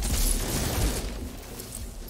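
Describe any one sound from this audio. A laser gun fires short bursts.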